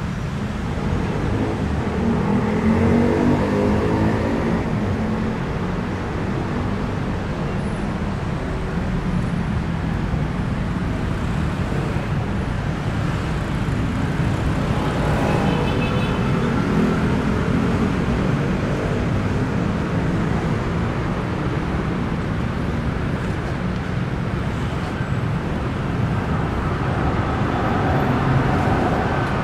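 City traffic rumbles past steadily outdoors.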